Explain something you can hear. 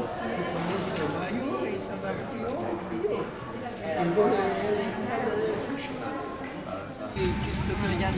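An elderly man talks animatedly nearby.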